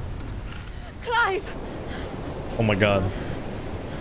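A woman calls out loudly.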